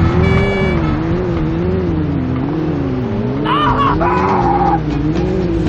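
A motorcycle engine drones steadily, its pitch slowly rising and falling.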